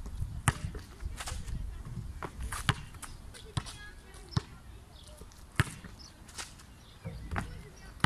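A basketball clangs off a metal hoop.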